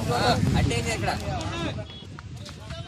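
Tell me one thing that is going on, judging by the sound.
Several men shout loudly outdoors.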